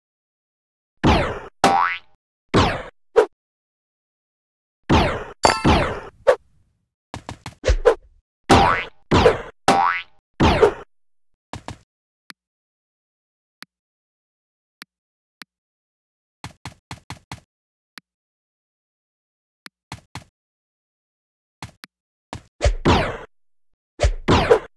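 Short springy game sound effects sweep downward in pitch, again and again.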